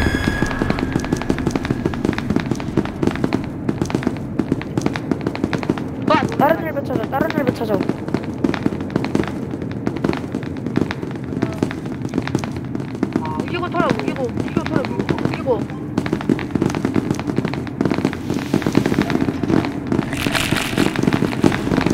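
Footsteps tap quickly and steadily on a hard tiled floor.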